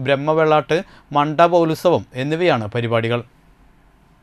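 A man chants loudly through a microphone.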